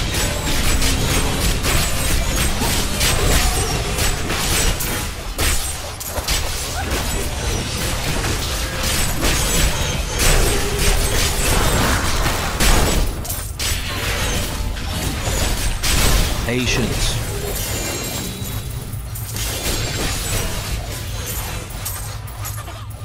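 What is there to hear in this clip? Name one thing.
Magic bolts crackle and zap in quick bursts.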